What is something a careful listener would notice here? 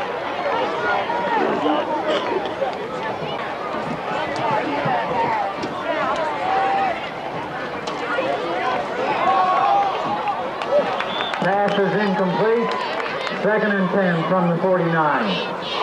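A crowd talks and cheers outdoors.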